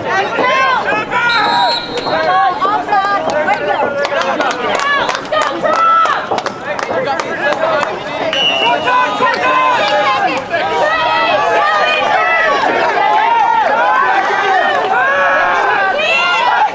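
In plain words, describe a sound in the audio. Young players shout and call to each other outdoors, some distance away.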